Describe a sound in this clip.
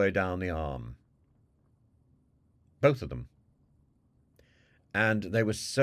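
An elderly man speaks calmly in short phrases, close to a microphone, as if on an online call.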